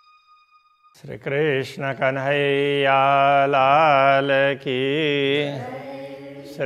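An elderly man chants in a long, steady sung voice.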